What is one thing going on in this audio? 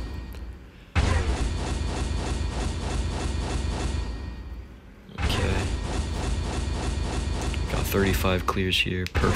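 A game menu plays rapid, rhythmic ticking chimes as rewards are counted.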